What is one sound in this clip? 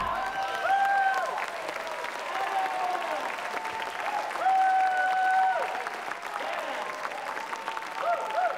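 A big band plays lively swing music with saxophones and horns.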